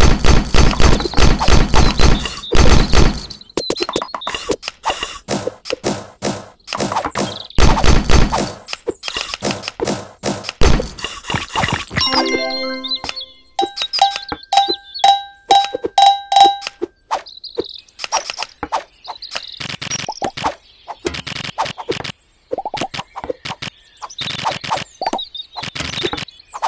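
Blocks smash and clatter in rapid bursts.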